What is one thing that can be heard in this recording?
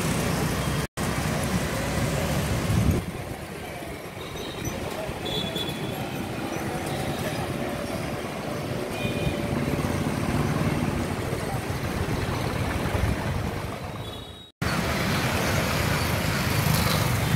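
Motorcycles pass by on the road.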